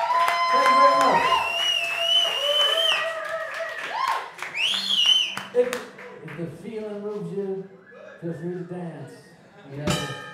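Electric guitars play a loud rock tune.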